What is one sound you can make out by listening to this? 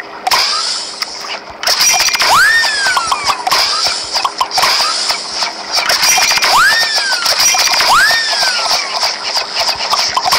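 Electronic sound effects bubble, squelch and swoop up and down in pitch.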